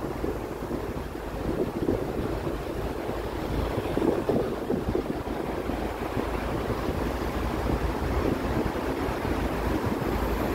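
Traffic rumbles steadily along a nearby street outdoors.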